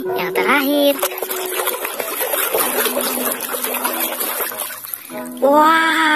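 Water splashes and sloshes as a hand stirs it.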